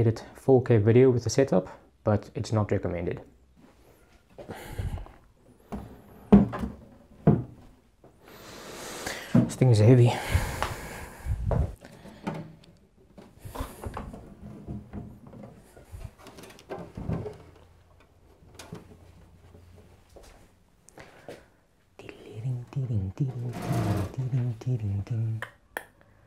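A man speaks calmly and close by to a microphone.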